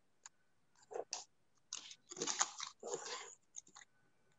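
Baking paper rustles and crinkles.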